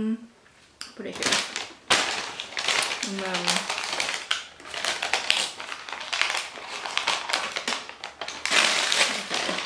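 A paper bag crinkles and rustles loudly.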